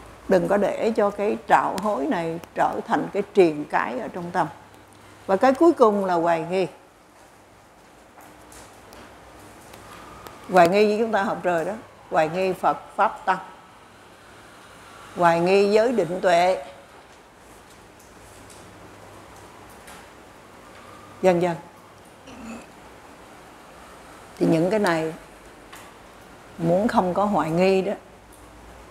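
An elderly woman speaks calmly into a microphone close by, with pauses.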